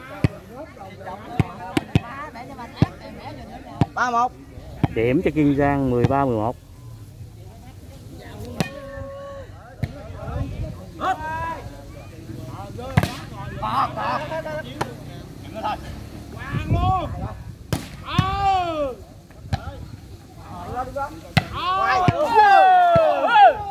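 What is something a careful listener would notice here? A ball is struck with sharp slaps.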